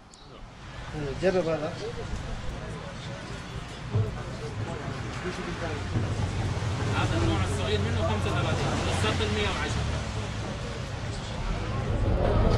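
A man talks close by, calmly.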